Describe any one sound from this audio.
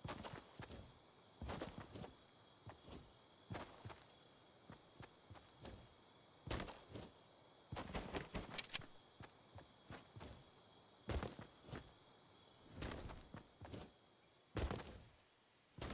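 Footsteps thud on grass in quick bursts.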